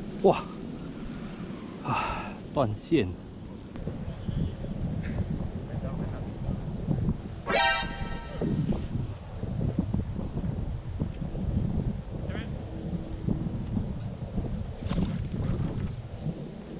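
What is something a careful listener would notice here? Wind rumbles outdoors by open water.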